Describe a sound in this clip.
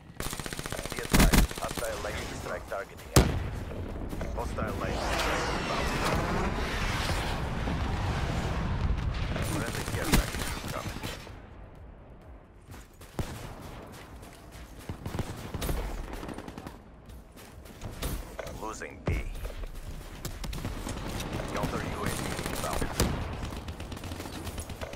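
Gunshots fire in rapid bursts, loud and close.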